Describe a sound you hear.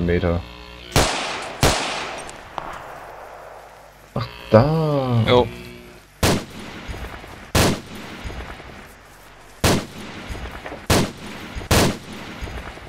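A rifle fires single loud shots that ring out.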